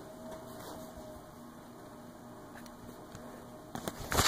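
Fingertips tap lightly on a touchscreen.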